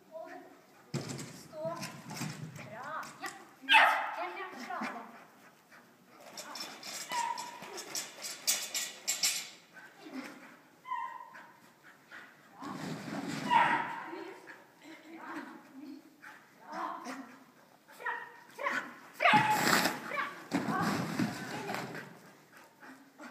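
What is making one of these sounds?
A woman calls out to a dog with animated praise, echoing in a large hall.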